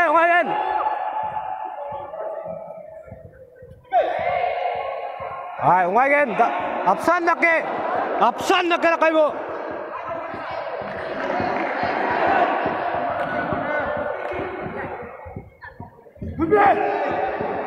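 A crowd of spectators murmurs and chatters in the background.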